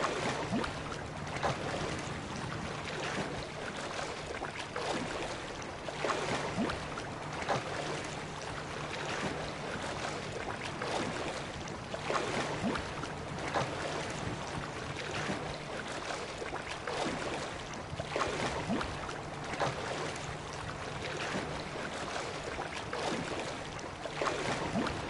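Hands splash through the water in regular strokes.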